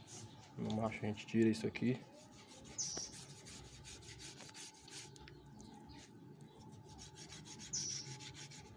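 A knife slices softly through raw pork skin and fat.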